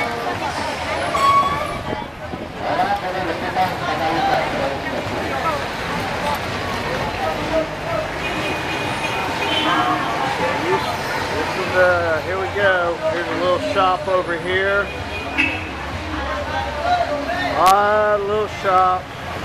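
A busy crowd of people chatters all around outdoors.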